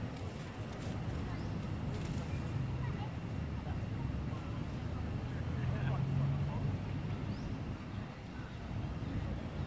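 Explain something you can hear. A monkey pads softly over dry dirt and leaves.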